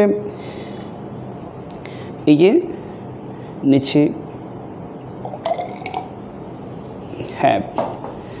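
Glassware clinks against glass.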